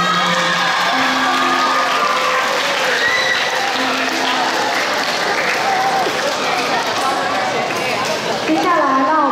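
A crowd of children chatters in the background.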